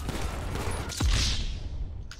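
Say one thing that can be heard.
A punch lands with a heavy thud.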